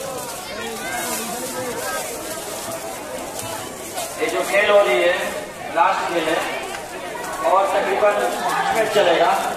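A crowd of young men shouts and cheers loudly outdoors.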